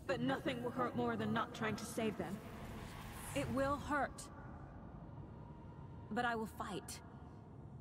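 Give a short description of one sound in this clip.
A woman speaks calmly and gravely, close by.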